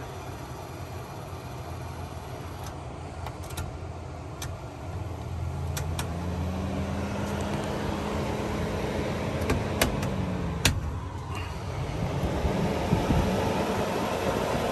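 A fan whirs steadily, speeding up and slowing down.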